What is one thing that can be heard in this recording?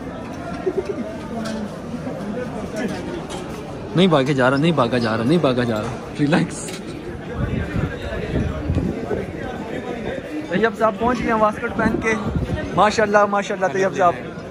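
A crowd chatters in a large, echoing hall.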